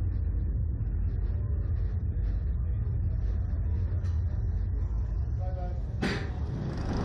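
A ride's machinery hums with a low, steady rumble.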